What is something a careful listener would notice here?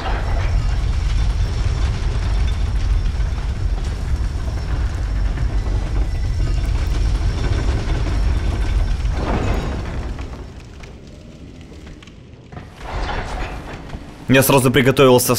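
Armoured footsteps thud and clink on wooden boards.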